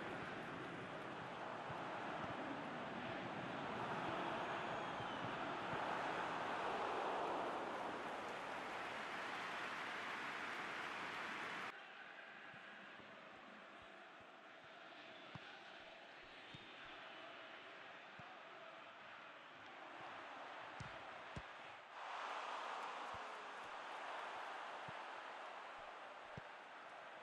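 A large stadium crowd roars steadily, rising and falling.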